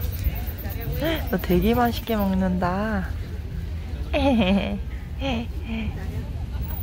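A young child speaks excitedly close by.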